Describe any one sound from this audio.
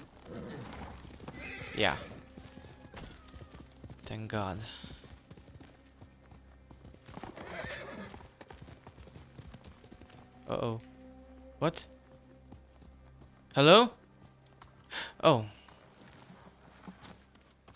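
A horse gallops, its hooves thudding on grass.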